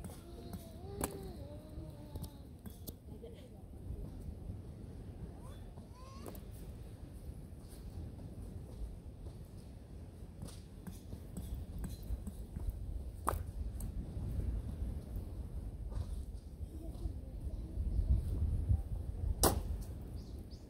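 Firewood knocks and clatters as it is handled.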